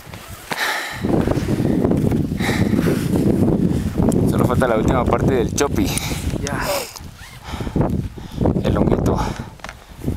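Wind blows hard, rumbling across the microphone.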